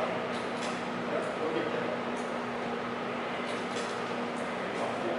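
A plastic cup knocks lightly against a metal coil.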